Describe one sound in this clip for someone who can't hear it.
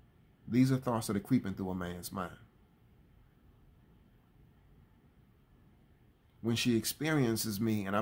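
A man speaks calmly and close to a microphone, pausing between phrases.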